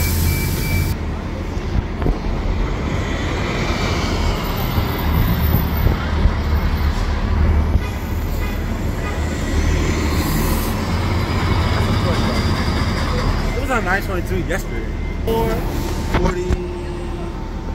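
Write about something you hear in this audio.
A bus engine rumbles loudly as buses pull away and drive past.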